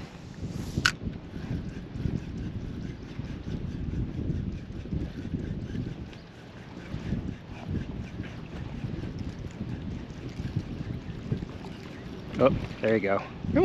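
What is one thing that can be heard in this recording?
Wind blusters across a microphone outdoors.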